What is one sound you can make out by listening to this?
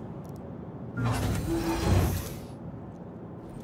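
A mechanical hatch hisses and whirs as it swings open.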